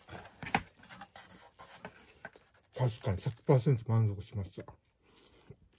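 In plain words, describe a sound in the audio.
Cardboard rustles and crinkles as a pizza box is handled.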